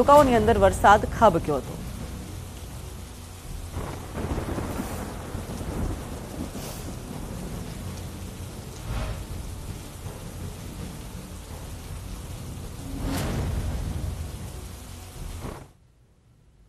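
Heavy rain pours down steadily.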